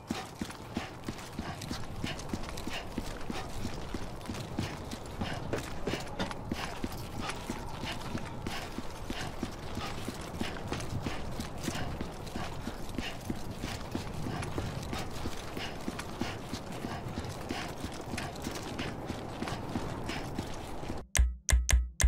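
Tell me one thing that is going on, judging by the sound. Footsteps fall steadily on a hard surface.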